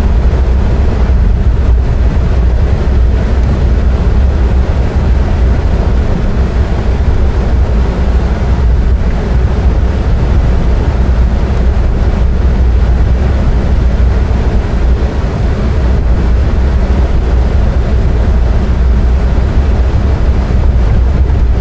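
A vehicle engine rumbles steadily at low speed.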